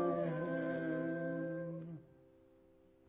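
A woman sings a held note through a microphone.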